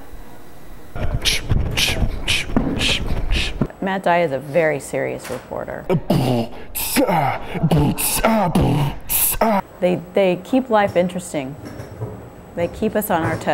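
A young man beatboxes into his cupped hands, with sharp clicks and puffs.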